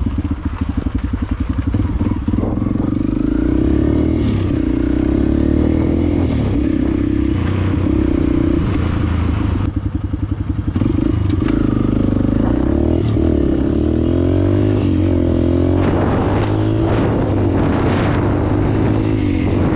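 A dirt bike engine revs up and accelerates along a road.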